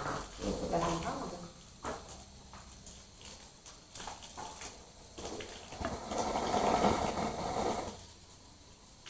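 A young woman talks softly to a dog close by.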